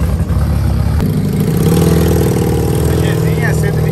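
A motorcycle engine idles with a steady, rapid putter.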